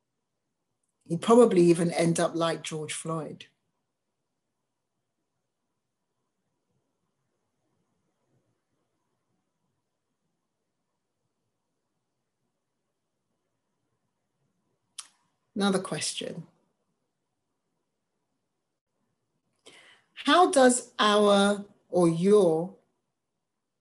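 A woman speaks calmly over an online call, in short bursts with long pauses.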